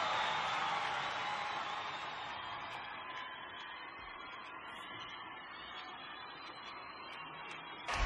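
A large crowd cheers loudly and slowly fades.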